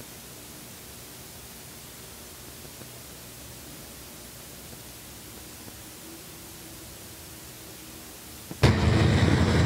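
A race car engine rumbles as the car rolls slowly along.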